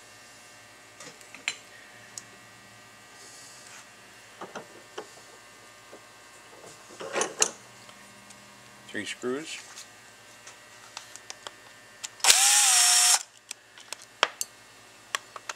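Small metal parts click and clink as they are handled.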